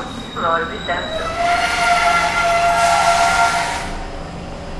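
Train brakes squeal with a high, drawn-out whine.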